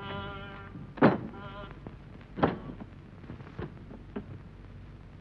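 A child knocks on a wooden door.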